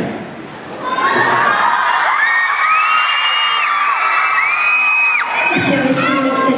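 A crowd screams and cheers loudly.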